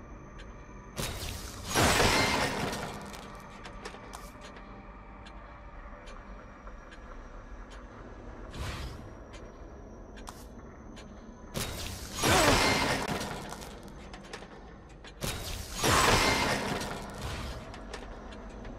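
A loud whooshing effect swells and fades as an upgrade is bought.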